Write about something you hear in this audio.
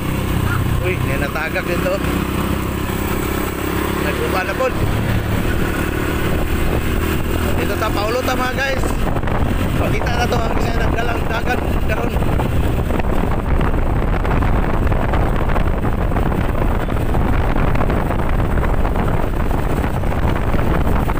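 Wind rushes loudly past while cycling outdoors.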